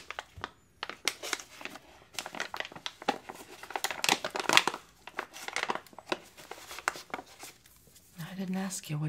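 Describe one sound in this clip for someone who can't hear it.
A plastic packet crinkles and rustles in a young man's hands.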